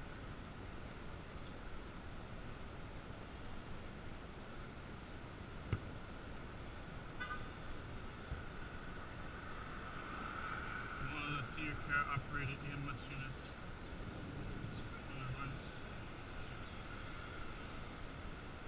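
Wind rushes past steadily while riding outdoors.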